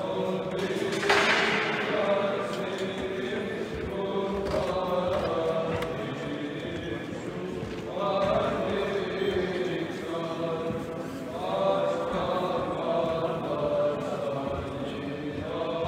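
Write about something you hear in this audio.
A man speaks calmly nearby in a large echoing hall.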